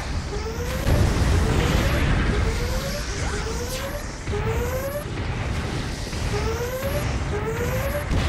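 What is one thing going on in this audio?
Heavy guns fire in bursts with booming shots.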